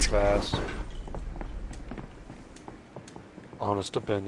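Footsteps tap on a hard rooftop.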